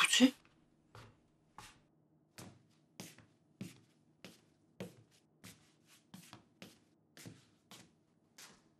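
Footsteps pad slowly across a wooden floor.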